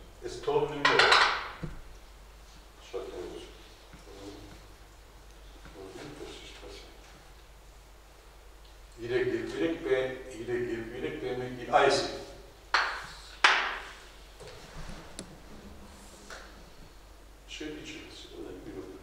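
An older man speaks calmly, lecturing at a steady pace.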